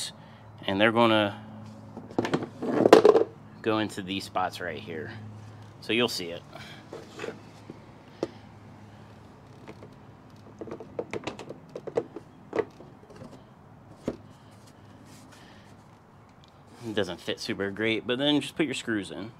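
Hard plastic panels knock and click as a hand handles them.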